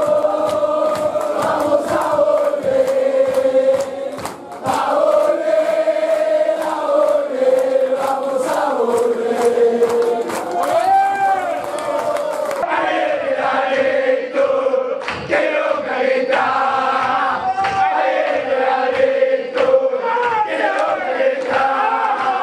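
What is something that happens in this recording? A large crowd of men and women sings and chants loudly in unison.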